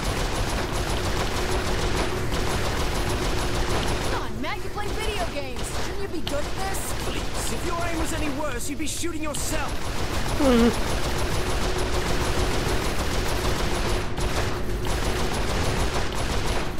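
A heavy machine gun fires in rapid, continuous bursts.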